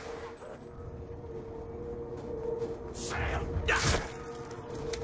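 A zombie snarls and groans.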